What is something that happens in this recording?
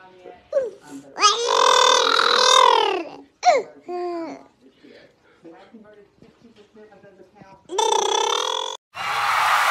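A young woman makes silly, swooping high-pitched sounds with her voice, close up.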